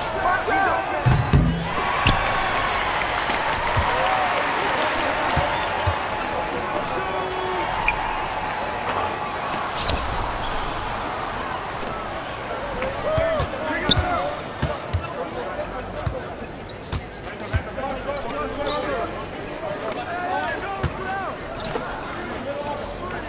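A basketball bounces on a hardwood floor with dull thuds.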